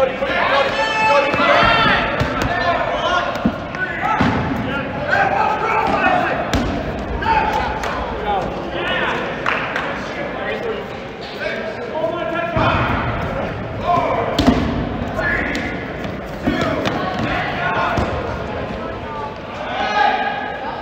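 A rubber ball bounces on a hard floor.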